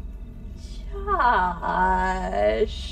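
A woman cries out close by.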